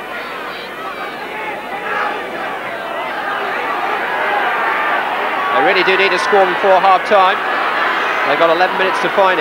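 A crowd roars from the stands.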